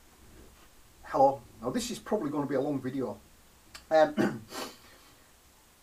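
A middle-aged man talks with animation close to a microphone.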